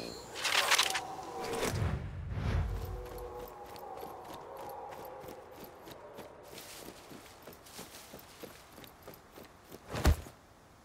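Footsteps crunch on gravel and grass.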